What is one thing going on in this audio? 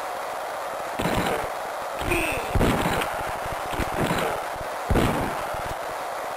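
Players crash into each other with heavy thuds.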